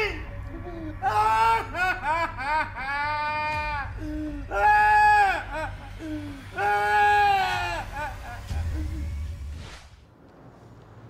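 An elderly man wails and moans loudly in long drawn-out cries.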